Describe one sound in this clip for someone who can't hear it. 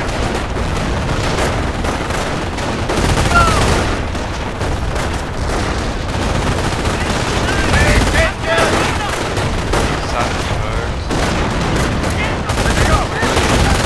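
Explosions rumble low and heavy.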